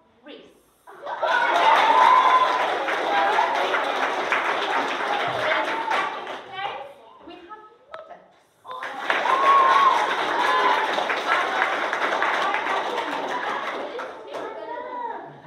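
A crowd of children cheers and shouts loudly in a room.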